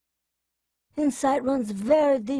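A man speaks with animation, his voice rising and falling.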